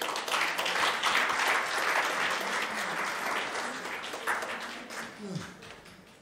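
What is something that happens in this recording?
An audience applauds steadily, then the clapping dies away.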